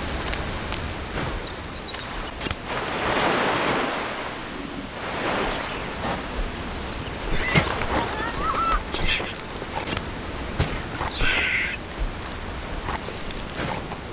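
A creature crunches its prey with sharp bites.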